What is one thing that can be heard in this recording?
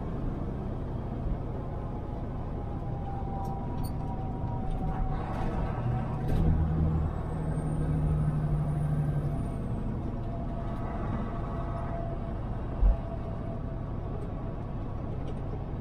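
Tyres roll steadily over the road.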